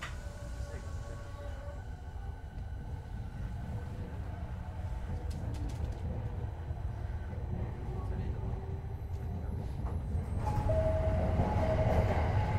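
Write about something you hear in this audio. A train rumbles steadily as it slows to a stop.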